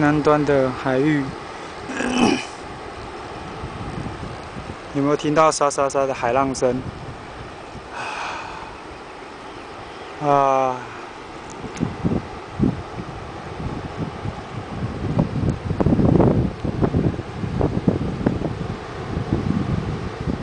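Waves break on a sandy beach far below.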